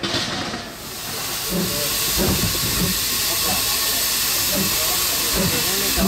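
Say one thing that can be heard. Train wheels rumble and clatter on the rails close by.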